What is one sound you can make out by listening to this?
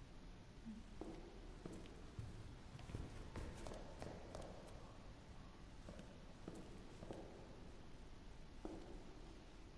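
Footsteps sound on a hard floor at an unhurried pace.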